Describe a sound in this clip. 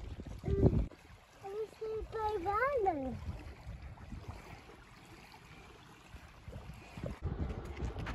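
Small waves lap gently at a shore.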